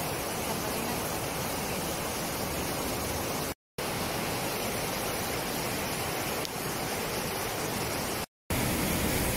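A shallow stream rushes and burbles over rocks.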